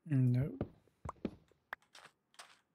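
A block crumbles and breaks with a crunch.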